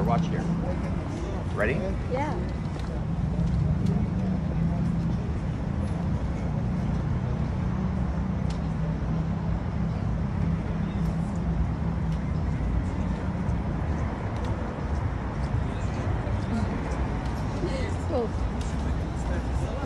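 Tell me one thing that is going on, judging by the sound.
A steady low street hum and rumble fills the air outdoors.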